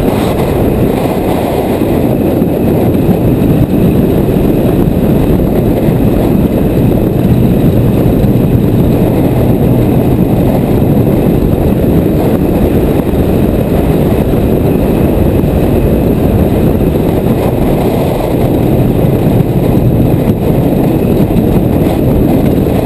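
A roller coaster train rumbles and rattles along its track.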